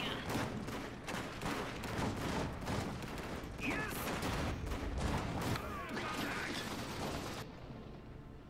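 Rapid gunfire crackles in bursts.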